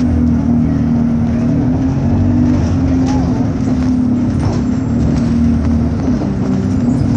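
A bus engine drones steadily as the bus drives along.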